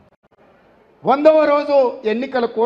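A man speaks forcefully into a microphone.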